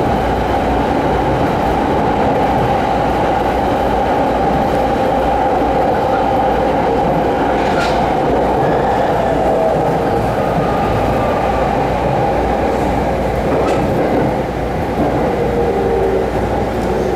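A train rumbles steadily along the tracks from inside a carriage.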